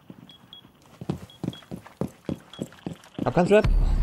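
Footsteps thud on a hard floor at a steady pace.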